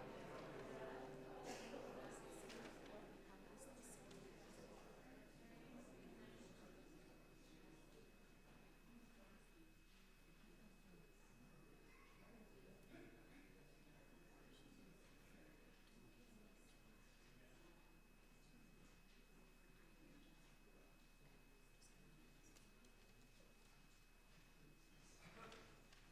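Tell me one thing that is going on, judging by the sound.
A seated crowd murmurs quietly in a large echoing hall.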